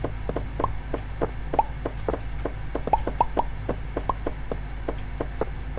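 Quick hollow knocks repeat steadily as footsteps.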